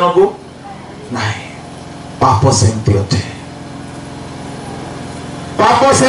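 A man speaks with animation through a loudspeaker in bursts, with pauses between phrases.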